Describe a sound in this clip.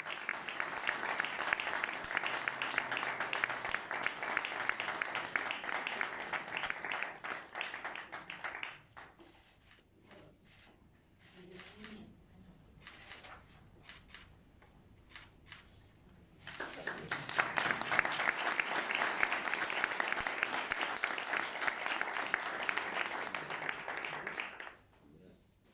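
A group of people applaud.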